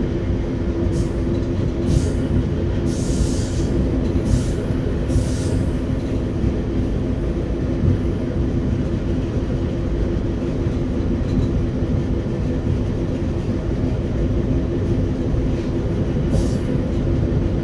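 Train wheels squeal and hiss on the track.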